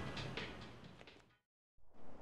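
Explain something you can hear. A man speaks calmly, heard close.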